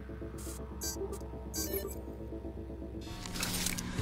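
Short electronic beeps chirp from a menu.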